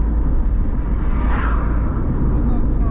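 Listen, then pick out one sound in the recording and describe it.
An oncoming car whooshes past.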